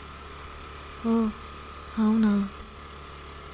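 A young woman answers briefly in a soft voice.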